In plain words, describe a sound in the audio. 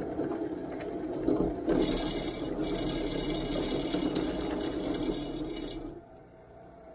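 A drill press motor whirs steadily.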